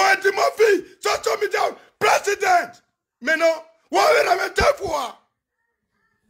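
A man speaks close to a phone microphone with animation.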